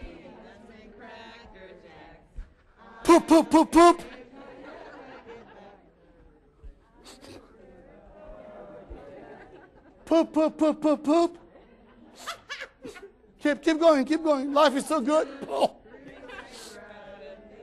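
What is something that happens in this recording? A man speaks with animation to an audience in a large room, at times raising his voice loudly.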